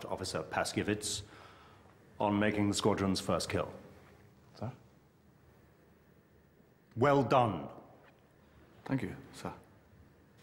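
A man speaks tensely and close by, in short bursts with pauses.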